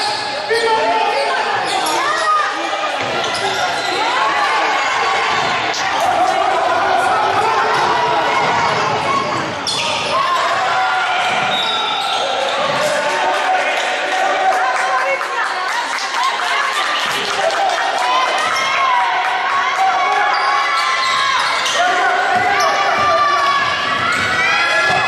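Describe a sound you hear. A crowd of spectators chants and cheers loudly in a large echoing hall.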